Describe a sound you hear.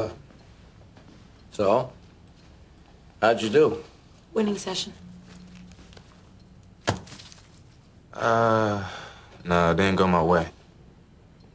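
An elderly man speaks firmly.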